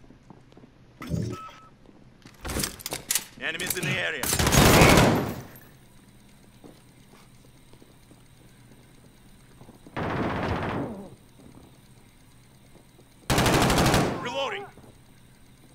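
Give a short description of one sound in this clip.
Gunfire rings out in loud, short bursts.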